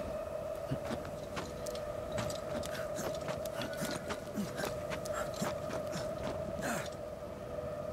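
Hands scrape and grip on rock while climbing.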